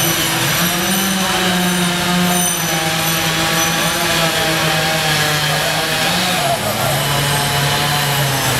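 Branches crack and snap as a tree is cut.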